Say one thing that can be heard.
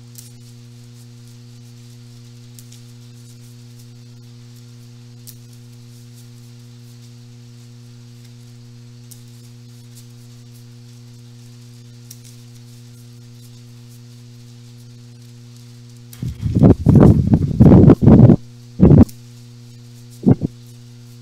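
Playing cards shuffle and slap softly in hands.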